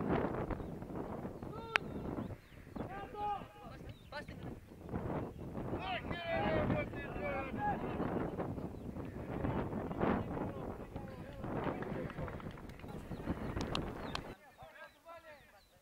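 Young men shout to each other across an open playing field.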